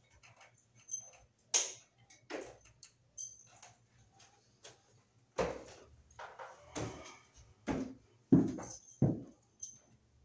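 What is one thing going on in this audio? A man's hands knock and bump against a wooden door frame close by.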